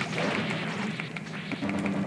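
A fiery magic blast crackles and bursts.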